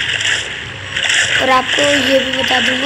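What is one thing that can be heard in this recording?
Water splashes as a body plunges in.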